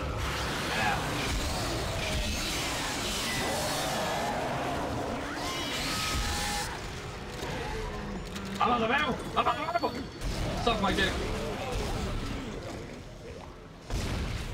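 Energy weapon shots fire in quick bursts.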